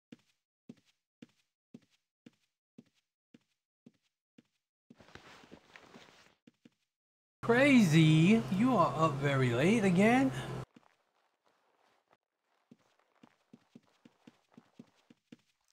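Footsteps tap in an even rhythm.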